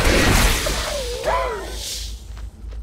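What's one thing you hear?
A creature cries out as it dies.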